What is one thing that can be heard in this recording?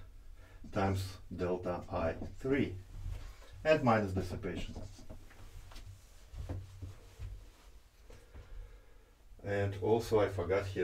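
A man speaks calmly, as if explaining.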